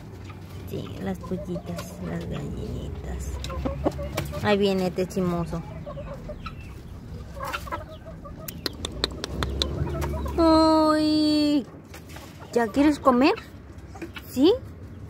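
Chickens cluck softly close by.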